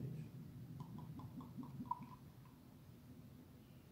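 Beer pours and fizzes into a glass.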